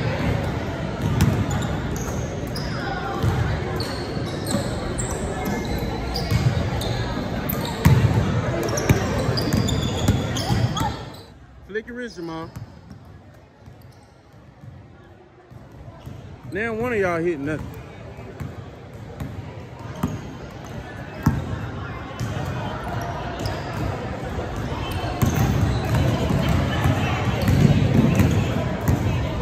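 Basketballs bounce and thud on a wooden floor in a large echoing hall.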